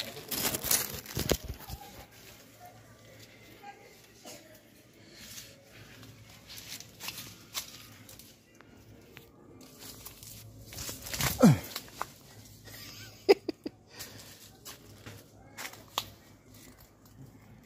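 Leaves and branches rustle and creak.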